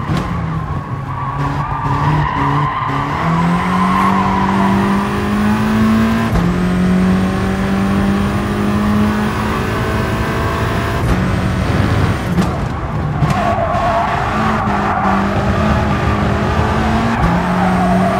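A racing car engine revs high, rising through the gears and dropping as it brakes.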